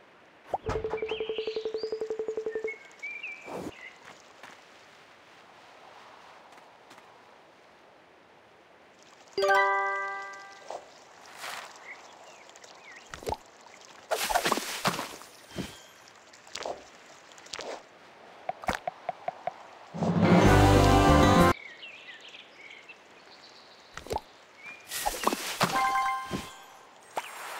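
Short electronic chimes and pops play now and then.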